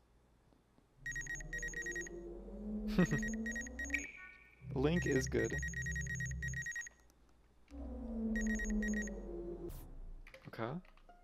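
A scanning machine hums with a rapid pulsing beep.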